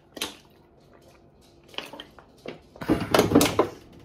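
A young woman gulps water from a plastic bottle.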